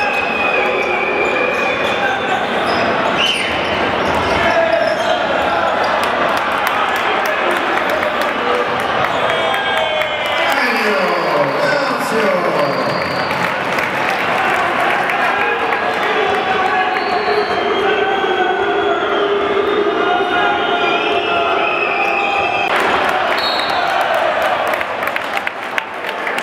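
A large crowd of fans chants and sings loudly in an echoing hall.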